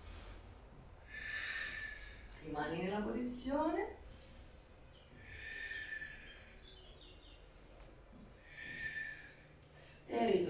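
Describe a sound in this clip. A woman breathes out slowly and audibly.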